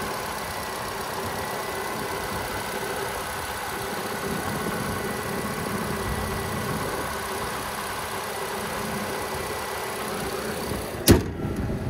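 A car's four-cylinder engine idles.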